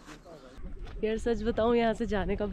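A young woman speaks cheerfully into a close microphone.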